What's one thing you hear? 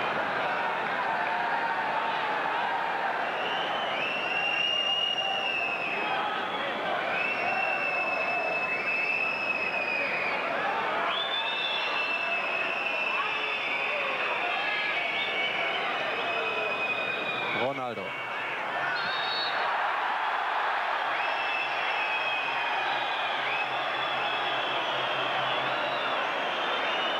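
A large crowd roars steadily in an open stadium.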